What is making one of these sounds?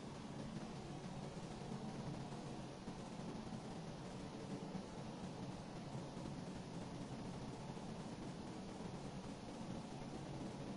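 Waves wash softly against a rocky shore.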